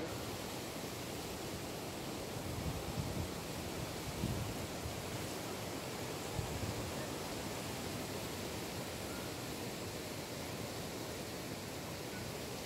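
Wind rustles through palm fronds.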